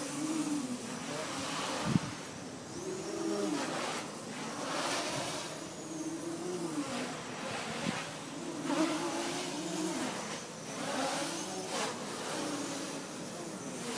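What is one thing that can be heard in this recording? A small drone buzzes overhead, its whine rising and falling in pitch.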